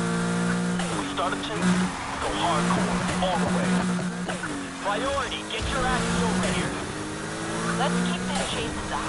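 Tyres screech as a car skids around a bend.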